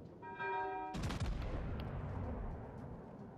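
Heavy naval guns fire in a loud, booming salvo.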